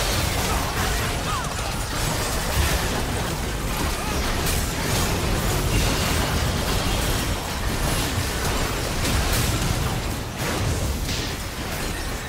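Magic spells crackle and boom in a hectic fantasy battle.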